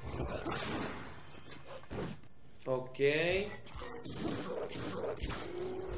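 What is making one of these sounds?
Swords clash and shatter in a game fight.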